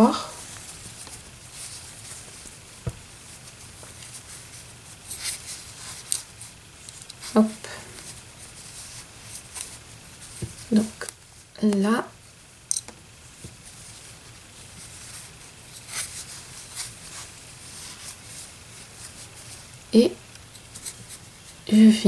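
Yarn rustles softly as a crochet hook pulls loops through it.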